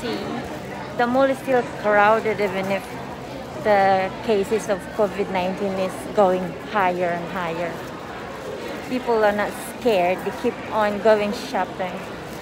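A young woman speaks close to the microphone, with animation.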